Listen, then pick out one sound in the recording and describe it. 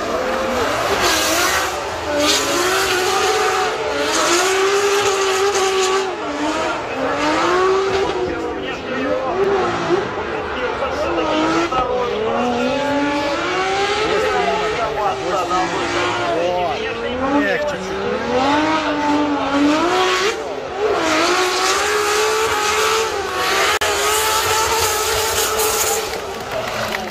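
Tyres screech on the track as a car slides sideways.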